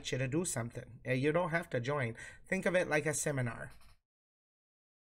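A young woman talks with animation over an online call.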